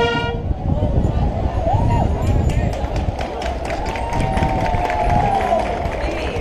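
A brass band plays a tune outdoors.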